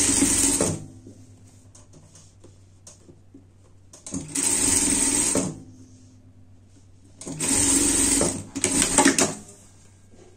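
A sewing machine runs in short, fast bursts.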